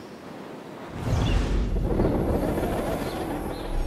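A loud gust of wind whooshes in.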